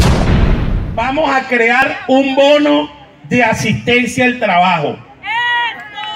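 A middle-aged man speaks loudly and with animation into a microphone, heard through a loudspeaker outdoors.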